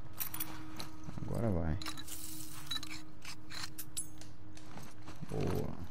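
Small items clatter and rustle as something is put together by hand.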